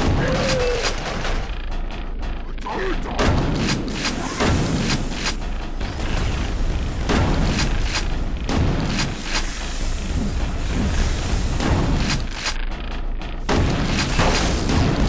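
Guns fire in rapid bursts with loud bangs.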